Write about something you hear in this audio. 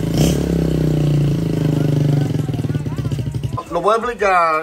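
A motorcycle engine idles with a low, throbbing rumble.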